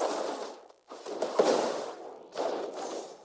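A magical spell effect bursts with a bright whoosh.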